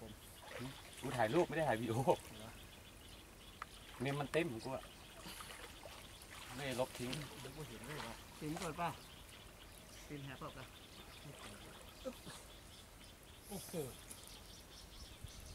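Water splashes and sloshes as men wade through it.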